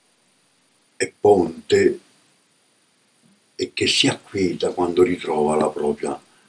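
An elderly man speaks calmly and close by, with pauses.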